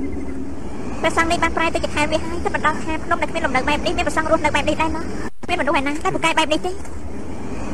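A young woman speaks with surprise, close by.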